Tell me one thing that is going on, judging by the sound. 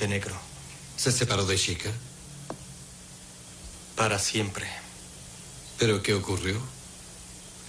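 A second man answers in a firm, low voice.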